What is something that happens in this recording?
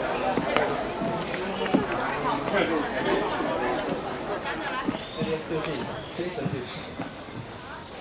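Footsteps tap on a hard path.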